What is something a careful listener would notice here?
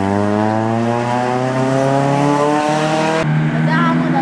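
A race car engine revs hard as the car accelerates uphill.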